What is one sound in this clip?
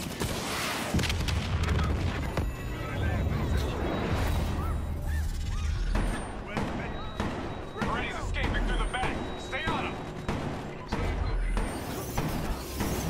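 Explosions boom with a deep rumble.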